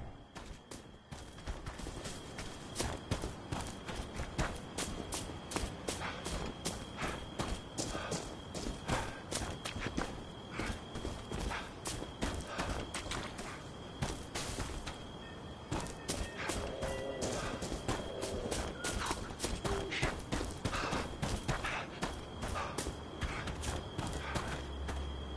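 Footsteps crunch quickly over leaves and brush.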